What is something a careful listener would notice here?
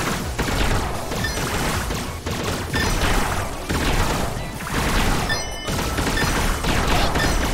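Rapid electronic shots and sparkling chimes from a video game ring out.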